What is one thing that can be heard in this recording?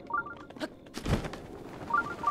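A glider cloth snaps open with a deep whoosh.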